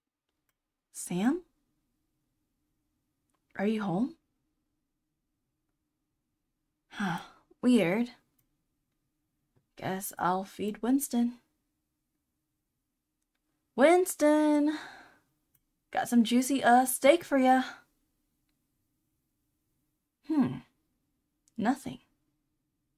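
A young woman speaks into a microphone close by, reading out lines with animation in short bursts.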